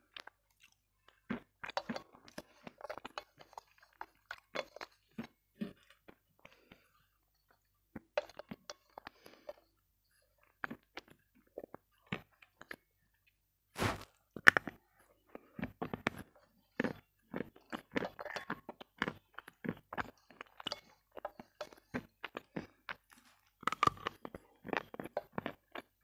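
Ice clinks and taps against a metal bowl.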